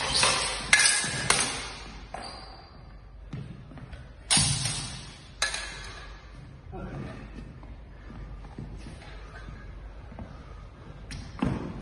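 Blades clash and clatter in a large echoing hall.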